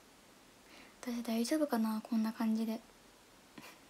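A young woman speaks softly and cheerfully close to a microphone.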